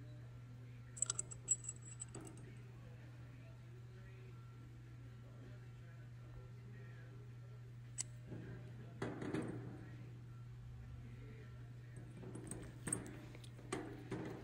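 Small metal parts click and clink together as they are handled.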